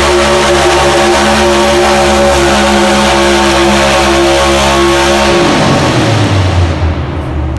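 A loud truck engine roars at high revs, then winds down.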